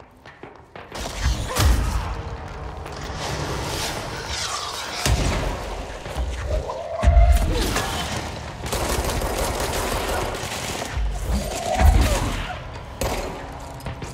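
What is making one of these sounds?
Loud explosions boom and debris crashes.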